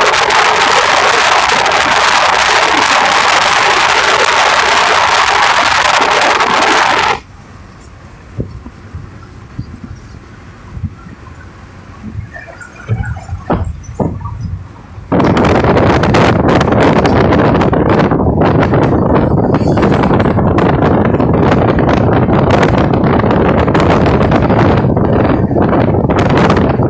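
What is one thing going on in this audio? Wind roars through an open car window at speed.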